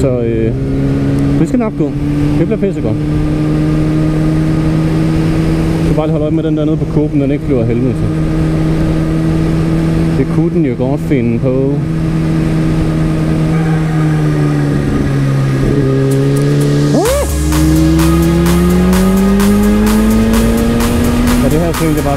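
A motorcycle engine hums steadily and revs up as it speeds along.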